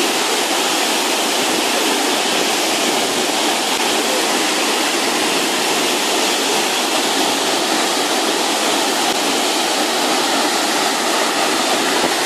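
A large waterfall roars loudly and steadily nearby.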